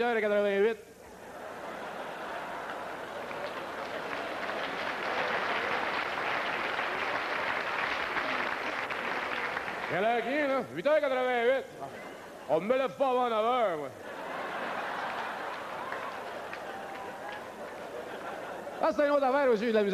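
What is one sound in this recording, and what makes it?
A large audience laughs.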